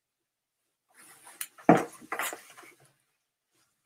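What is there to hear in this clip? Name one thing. Cloth rustles and brushes close by.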